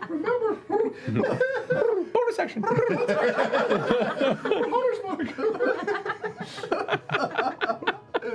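A group of men and women laugh loudly together through microphones.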